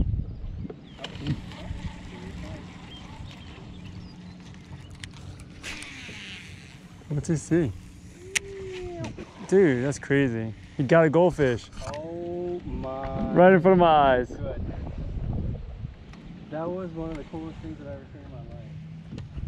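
A fishing reel whirs as it is wound in.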